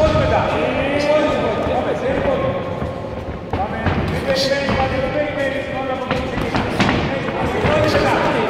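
Gloves and kicks thud against bodies.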